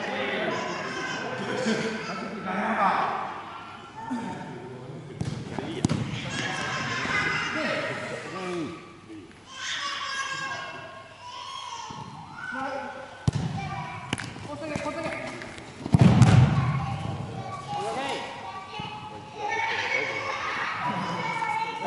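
Young men shout and call out to one another in an echoing indoor hall.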